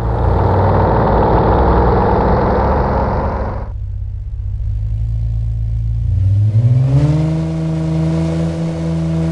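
A car engine hums steadily, then revs up.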